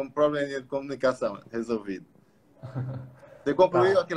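An older man laughs.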